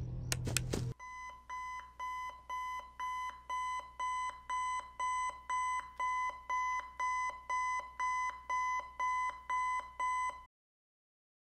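An alarm clock beeps in a steady, repeating rhythm.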